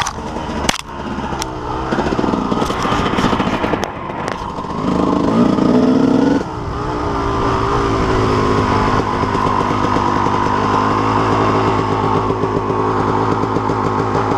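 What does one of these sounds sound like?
Branches and leaves brush and scrape against the rider.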